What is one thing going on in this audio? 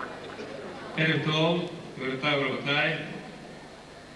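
A man sings into a microphone through loudspeakers.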